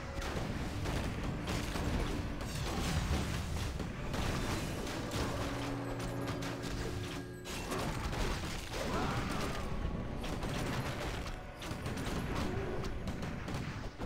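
Magic spells crackle and blast in a loud battle.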